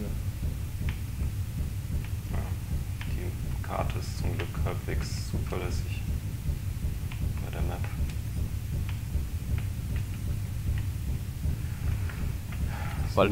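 A heavy machine's engine hums low and steady.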